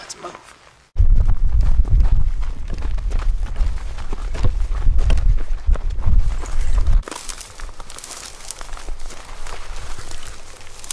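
Footsteps crunch on dry, stony ground.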